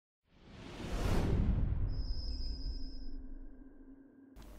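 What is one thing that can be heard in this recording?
A deep whoosh swells and fades away.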